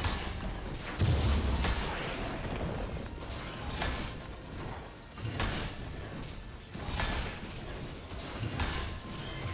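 Game fighting effects clash and whoosh with repeated hits.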